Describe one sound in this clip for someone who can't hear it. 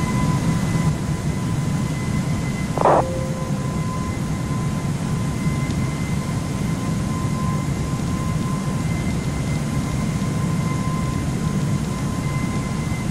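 Jet engines roar with a steady low rumble.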